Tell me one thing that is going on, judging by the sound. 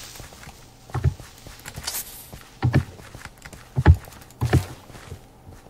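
A sword hits a creature with dull thumps.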